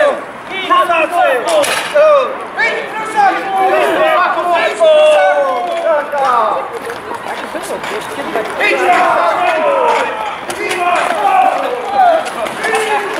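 Muskets fire with sharp bangs outdoors.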